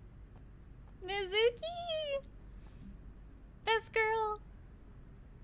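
A young woman speaks briefly and excitedly, close to a microphone.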